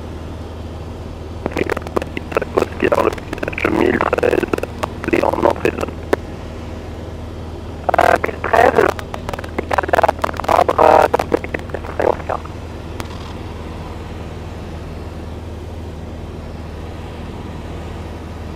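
Wind rushes steadily over a glider's canopy in flight.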